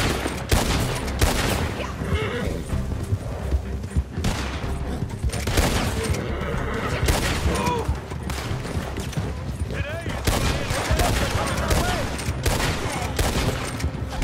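Gunshots crack sharply, again and again.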